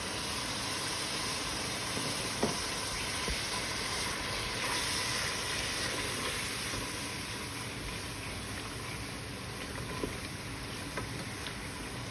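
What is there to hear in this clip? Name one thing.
A wooden spoon scrapes and taps against a pan.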